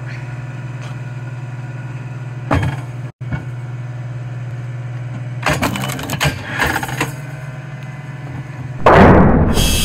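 An electric log splitter hums steadily.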